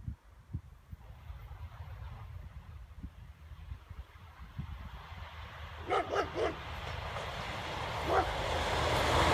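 A train approaches on the rails, growing steadily louder.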